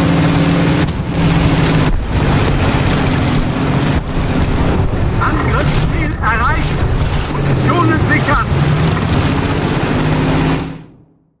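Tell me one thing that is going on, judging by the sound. A tank engine rumbles loudly and steadily.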